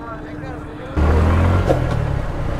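A motorcycle engine rumbles loudly while riding.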